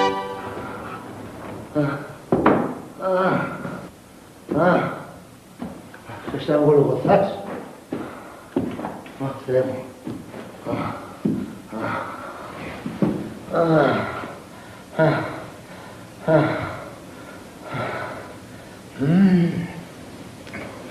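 A man talks to himself, close by.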